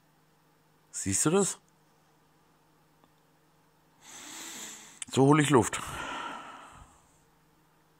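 A stomach gurgles and growls loudly up close.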